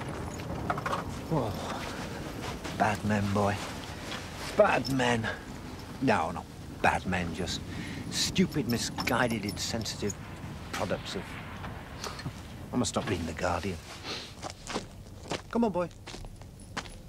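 A man calls out and talks nearby with feeling.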